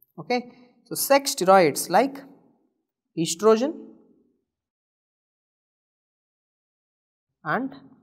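A young man speaks calmly and clearly into a close microphone, in short phrases.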